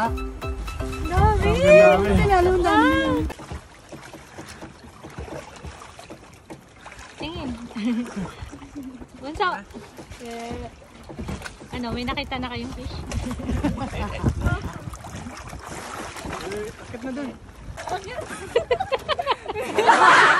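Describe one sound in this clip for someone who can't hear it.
Water laps and splashes around people swimming close by.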